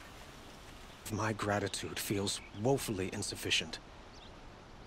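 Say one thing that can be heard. A man speaks calmly and close by.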